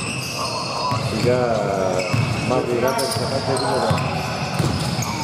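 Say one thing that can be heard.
Men call out to each other in an echoing gym.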